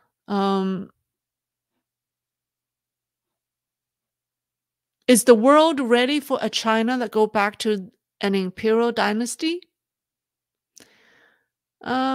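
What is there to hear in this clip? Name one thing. A woman speaks calmly through a microphone, as if on an online call.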